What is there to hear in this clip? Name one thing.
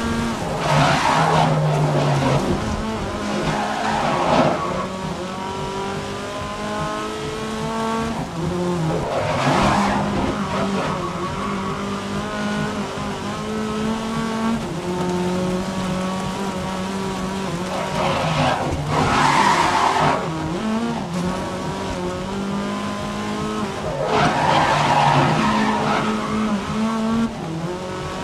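A racing car engine roars steadily, rising and falling in pitch as it changes gear.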